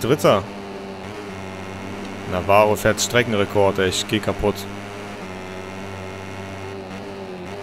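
A motorcycle engine drones steadily at high speed.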